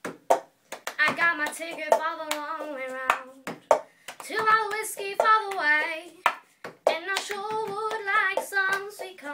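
A young woman sings close by.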